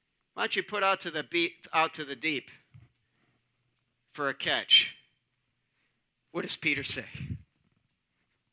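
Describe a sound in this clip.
A man speaks with animation, pausing between phrases.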